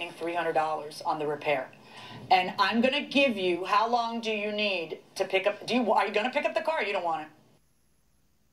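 A middle-aged woman speaks firmly over a television speaker.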